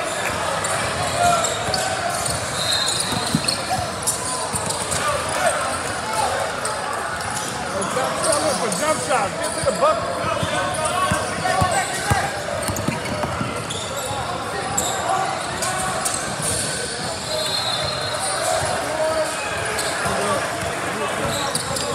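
Spectators chatter and call out in an echoing gym.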